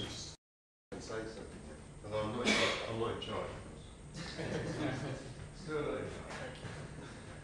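A man speaks calmly in an echoing room.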